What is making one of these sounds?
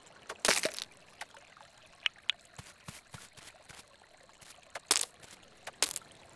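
Footsteps patter softly on grass.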